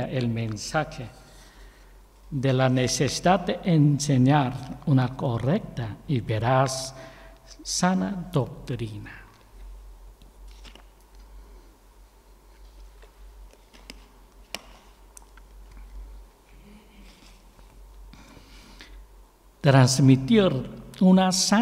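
A man reads out calmly into a microphone, heard through a loudspeaker in an echoing room.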